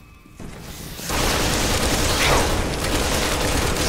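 A creature roars loudly.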